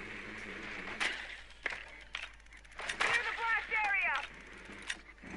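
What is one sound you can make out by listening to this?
Gunshots crack in short, sharp bursts close by.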